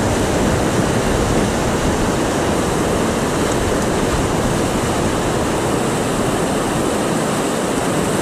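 Rapids rush and roar loudly close by.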